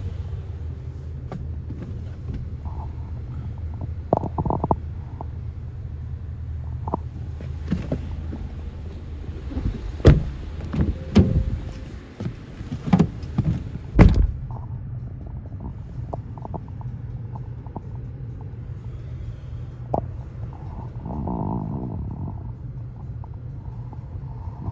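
A car engine idles with a low, steady hum.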